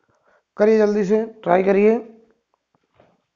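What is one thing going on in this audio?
A man speaks calmly, up close.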